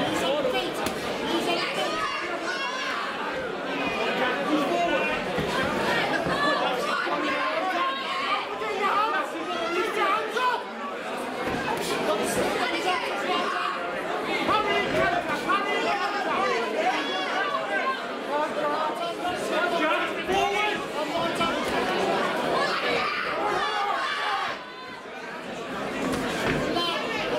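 Boxing gloves thud against bodies.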